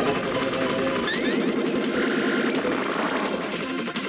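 A burst of bright chimes rings out as a bonus is awarded.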